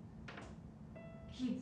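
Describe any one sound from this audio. A piano note sounds softly.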